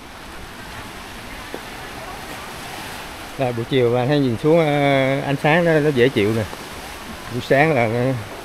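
Small waves lap gently against a rocky shore.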